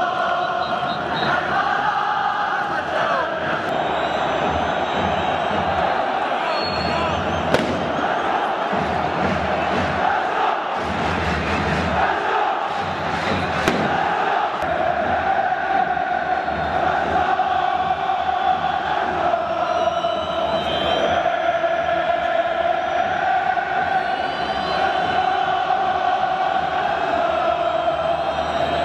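A huge crowd sings a chant in unison, echoing across an open stadium.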